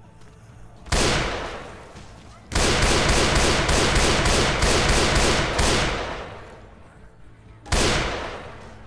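A rifle fires loud shots that echo and fade.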